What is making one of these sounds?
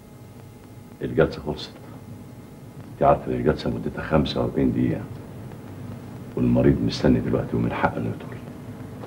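An elderly man speaks in a low, serious voice.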